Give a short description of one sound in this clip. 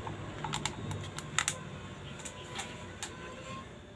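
Water pours into a blender jar.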